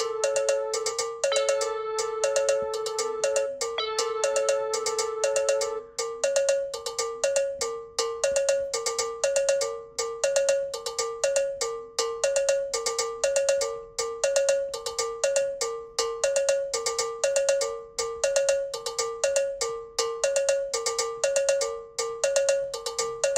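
An electric keyboard plays a quick, repeating pattern of bright notes.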